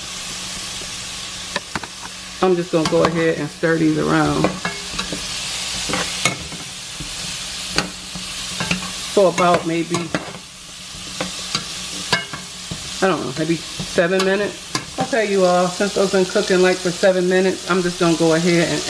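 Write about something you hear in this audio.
Food sizzles in a hot pot.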